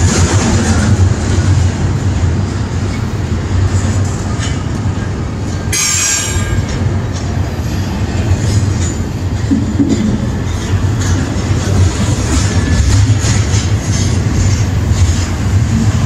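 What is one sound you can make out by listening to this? A freight train rumbles steadily past close by.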